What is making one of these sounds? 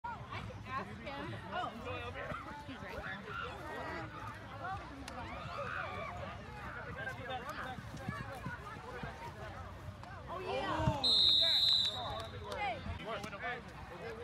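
A crowd of young men and women shout and call out across an open field outdoors.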